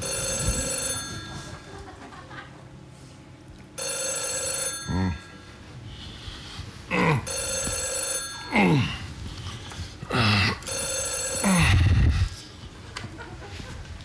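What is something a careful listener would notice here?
A woman speaks quietly into a telephone.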